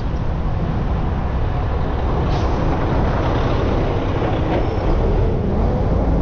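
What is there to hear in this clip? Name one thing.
A large truck's engine rumbles close by.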